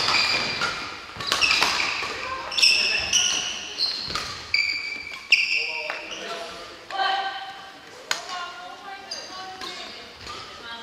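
Shoes squeak sharply on a gym floor, echoing in a large hall.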